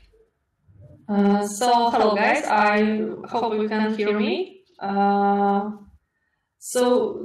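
A young woman talks calmly and cheerfully over an online call.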